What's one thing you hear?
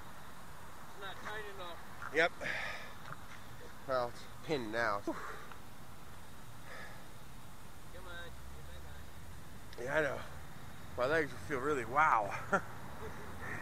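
A man speaks casually nearby, in short bursts.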